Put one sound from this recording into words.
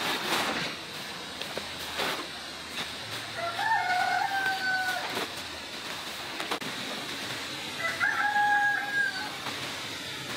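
A plastic sack rustles and crinkles.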